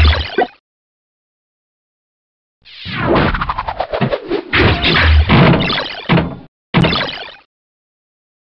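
Pinball game sound effects chime and whoosh in bursts.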